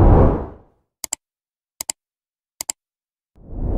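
A mouse button clicks several times.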